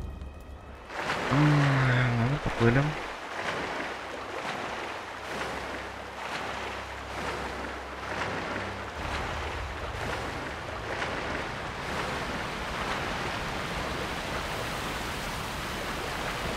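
Water splashes steadily as a figure swims.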